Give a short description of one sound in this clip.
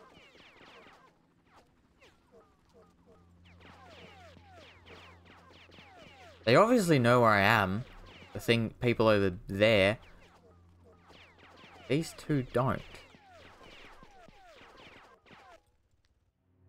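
A young man talks with animation into a close microphone, at times loudly.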